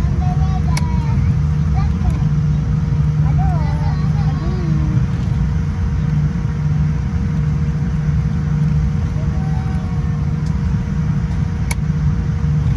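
A jet airliner's engines rumble steadily in the cabin.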